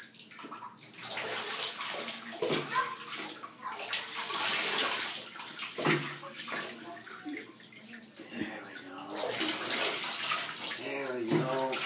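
Water pours from a cup and splashes into a bathtub.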